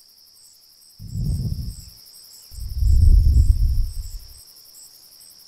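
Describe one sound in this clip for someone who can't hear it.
Wind gusts in bursts, rumbling low across the outdoors.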